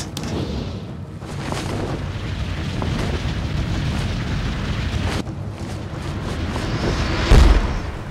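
A cape flaps in rushing wind.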